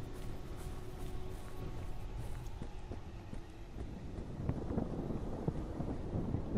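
Footsteps walk along a paved road.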